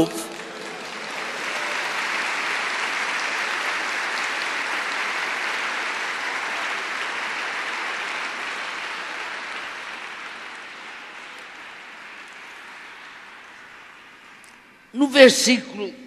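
A crowd applauds loudly in a large hall, then the clapping slowly fades.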